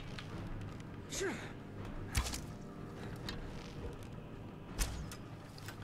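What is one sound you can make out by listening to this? A bowstring twangs as arrows are loosed.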